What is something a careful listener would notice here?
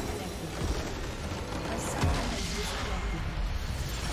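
A crystal structure shatters with a loud burst.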